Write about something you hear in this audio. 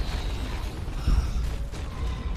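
A dragon breathes a roaring burst of fire.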